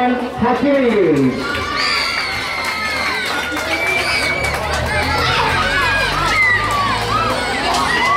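A crowd of children and adults cheers and shouts outdoors.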